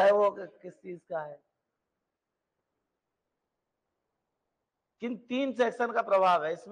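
A middle-aged man speaks steadily through a microphone, pausing briefly.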